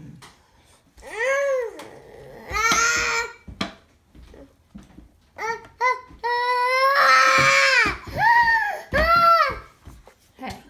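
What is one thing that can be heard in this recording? A baby squeals and laughs loudly up close.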